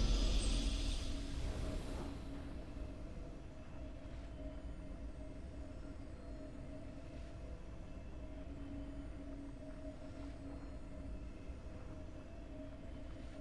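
A soft, steady game tune plays.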